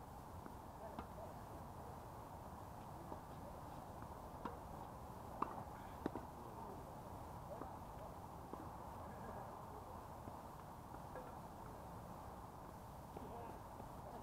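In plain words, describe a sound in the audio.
Tennis balls are struck with rackets in the distance.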